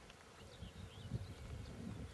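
A bumblebee buzzes as it takes off from a flower.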